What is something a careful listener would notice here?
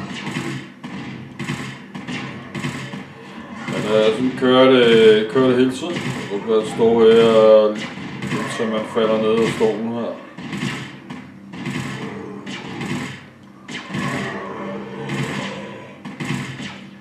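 A gun fires in steady, repeated shots.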